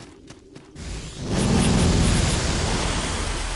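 A blade slashes through a creature.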